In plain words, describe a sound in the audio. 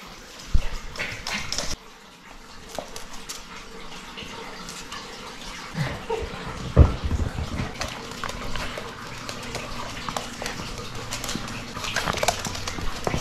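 Puppies' claws patter and scratch on a hard floor.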